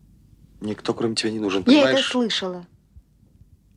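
A young man speaks urgently, close by.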